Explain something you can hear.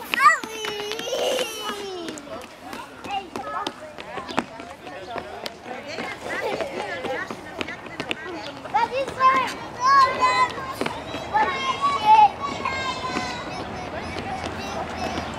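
Small shoes patter on a hard outdoor surface.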